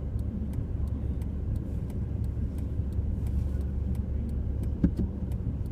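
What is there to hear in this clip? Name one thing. A vehicle engine rumbles steadily at low speed.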